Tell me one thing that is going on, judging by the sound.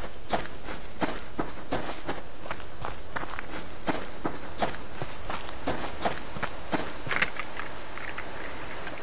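Footsteps swish through grass at a steady walking pace.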